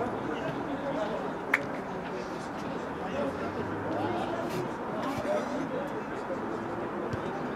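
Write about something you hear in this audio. Football players shout and call to each other across an open pitch outdoors.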